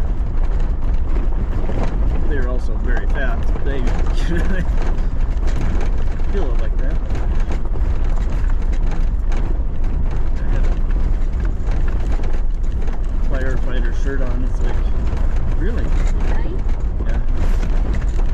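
A vehicle engine rumbles steadily while driving.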